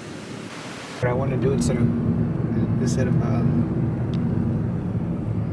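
A car engine and tyres rumble on a road.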